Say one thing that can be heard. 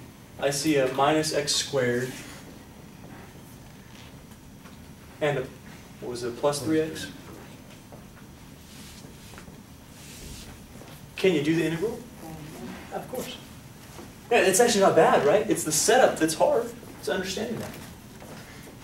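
A man speaks clearly and calmly, close by.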